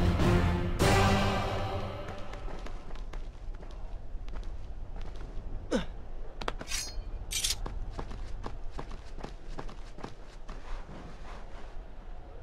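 A climber's hands and feet tap and scrape on stone.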